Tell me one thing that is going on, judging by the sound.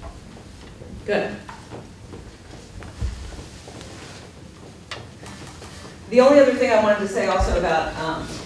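A woman reads aloud calmly nearby.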